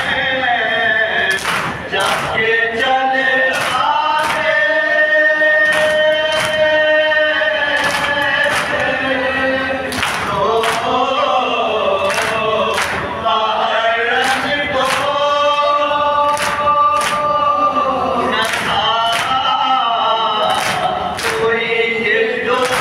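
A man chants loudly through a loudspeaker in an echoing hall.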